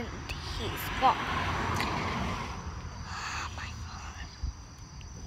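A girl speaks excitedly close up.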